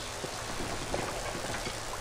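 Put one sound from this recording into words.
Electricity crackles and buzzes between metal coils.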